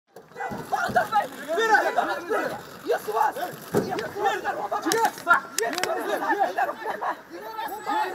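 A crowd of men and women shout and argue agitatedly close by.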